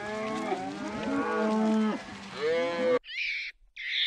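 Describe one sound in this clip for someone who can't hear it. Cows moo loudly nearby.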